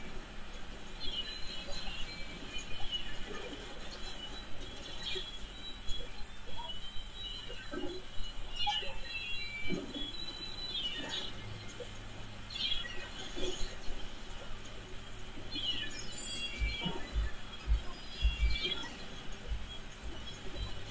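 A toy ink gun fires rapid bursts of wet, splattering shots.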